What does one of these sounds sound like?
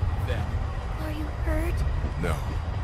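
A young girl asks a soft question up close.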